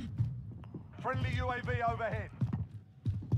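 A young man exclaims loudly into a microphone.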